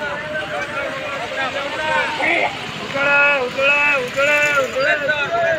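A crowd of men and women talk outdoors.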